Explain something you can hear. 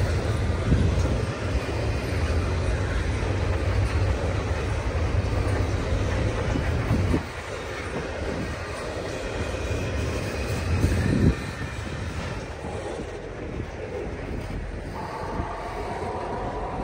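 Wind blows across open ground outdoors.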